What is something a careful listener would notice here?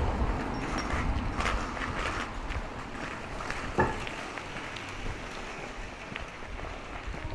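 Water trickles gently along a narrow stream.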